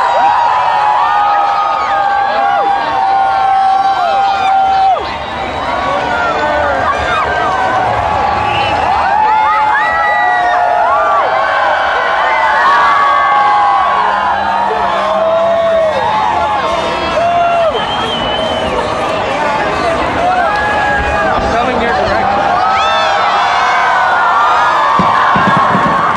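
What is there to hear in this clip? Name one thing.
A large crowd cheers and whistles loudly outdoors.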